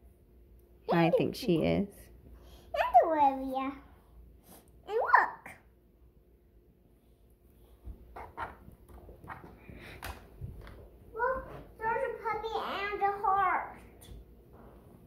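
A young girl talks excitedly, close by.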